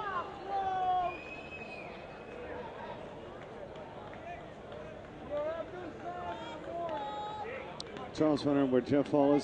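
A stadium crowd murmurs outdoors.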